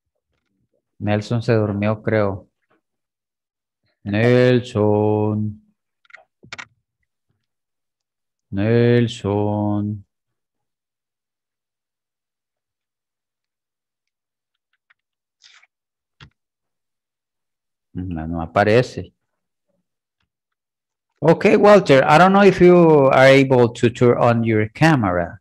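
A man speaks calmly in short phrases over an online call, with pauses between them.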